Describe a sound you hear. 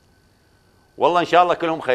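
A man speaks clearly into a microphone.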